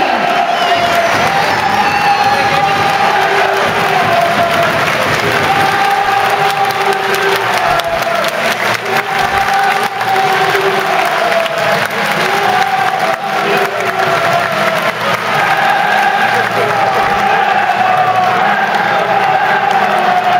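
A crowd claps steadily in an open stadium.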